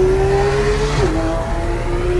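A car engine's pitch drops suddenly as a gear shifts.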